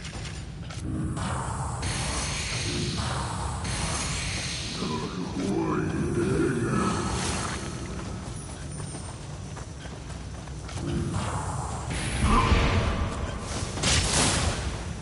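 Swords clash and strike with sharp metallic hits.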